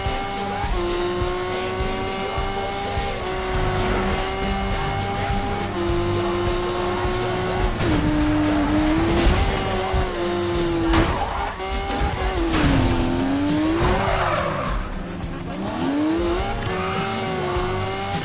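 A car engine roars steadily, shifting gears and revving up and down.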